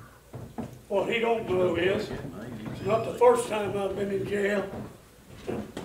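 An elderly man speaks with feeling.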